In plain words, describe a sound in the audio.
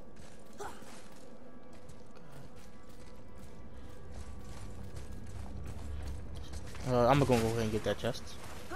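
Heavy footsteps crunch on snow and stone.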